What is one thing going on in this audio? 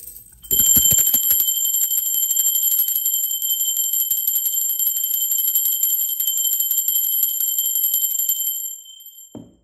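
A small brass bell rings steadily and clearly, then its ringing fades away.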